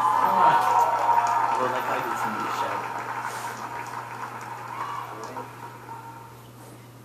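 A man speaks into a microphone through a loudspeaker in a large echoing hall.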